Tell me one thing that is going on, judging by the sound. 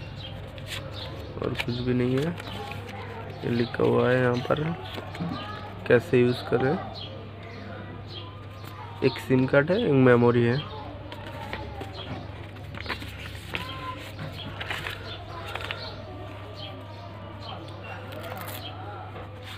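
Paper rustles and crinkles as it is unfolded and handled.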